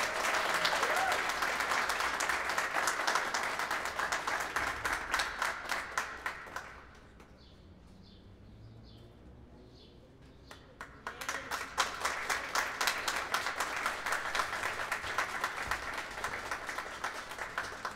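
An audience claps and applauds outdoors.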